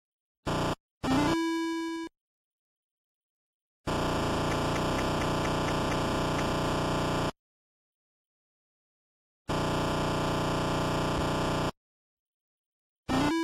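Retro video game music and sound effects play in bursts.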